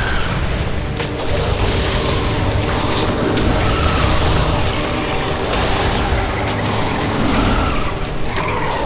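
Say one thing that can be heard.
Game spell effects crackle and boom in a dense battle.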